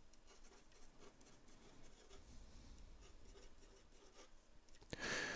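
A marker squeaks and scratches across paper.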